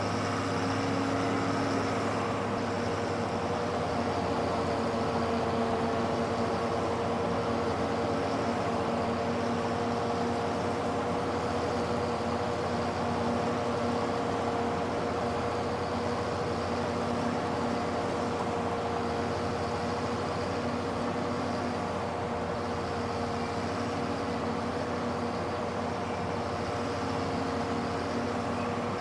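A tractor's diesel engine rumbles steadily.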